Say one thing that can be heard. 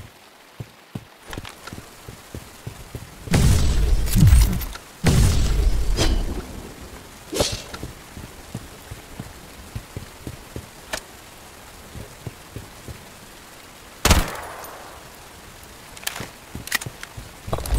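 Footsteps thud on stone and wooden floors.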